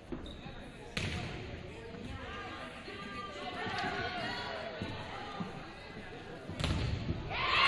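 A volleyball is struck with sharp smacks in an echoing gym.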